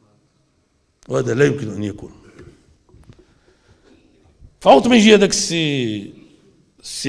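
An elderly man speaks forcefully into a microphone, heard through loudspeakers.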